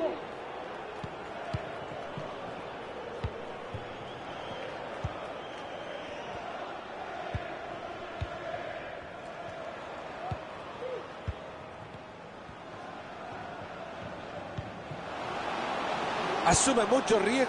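A large stadium crowd murmurs steadily and swells into a loud roar near the end.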